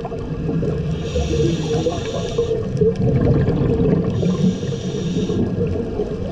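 A scuba diver exhales through a regulator underwater, with bubbles bursting out in a rush.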